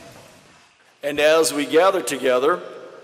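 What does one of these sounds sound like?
A man speaks calmly through a microphone and loudspeakers in a large echoing hall.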